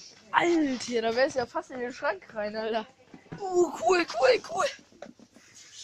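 A teenage boy talks loudly and excitedly close by.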